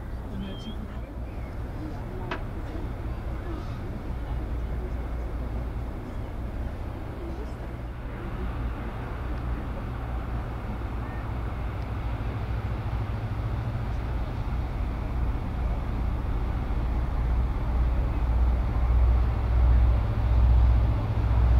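A large ship's engine rumbles low and steady, growing louder as it nears.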